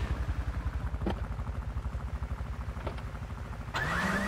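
A car door clicks open and shuts.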